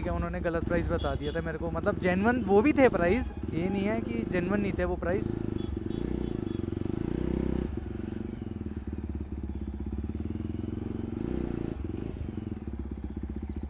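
A motorcycle engine runs with a steady low rumble.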